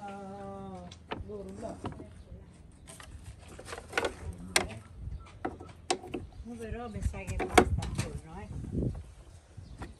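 Plastic parts knock and click.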